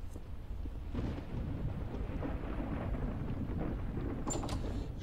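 Thunder rumbles outside.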